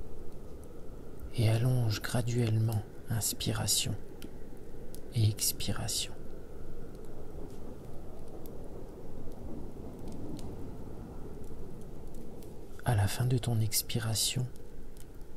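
A wood fire crackles and pops softly.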